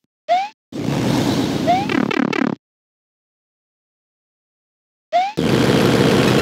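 A game character jumps with a short rising chirp.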